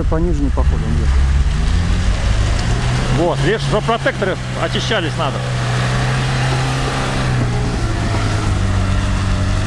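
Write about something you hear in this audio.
A car engine revs and labours steadily close by.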